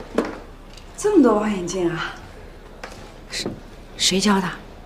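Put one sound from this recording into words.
A woman speaks with mild surprise.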